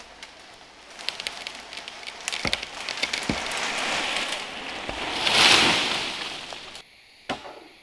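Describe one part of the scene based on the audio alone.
A tall tree crashes down through rustling branches.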